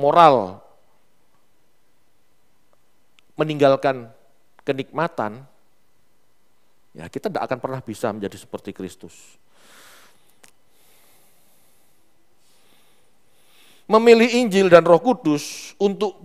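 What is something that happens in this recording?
A man speaks with animation through a headset microphone, pausing between phrases.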